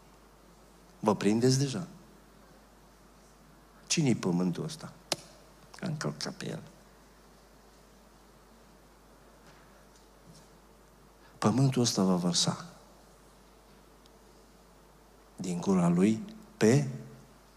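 An older man speaks with emphasis into a microphone, in short bursts with pauses.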